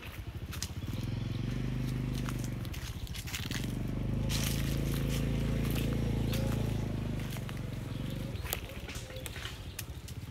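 Fruit snaps off a stem.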